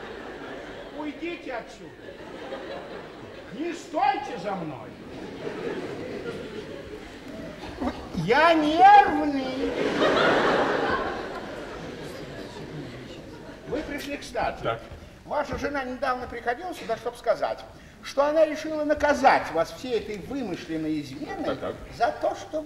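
A man speaks loudly and with animation on a stage, heard from a distance in a large hall.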